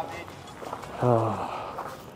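A young man sighs heavily.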